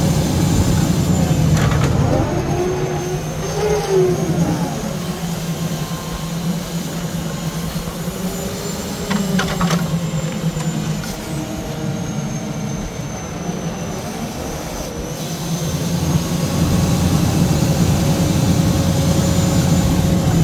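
A diesel engine runs steadily nearby.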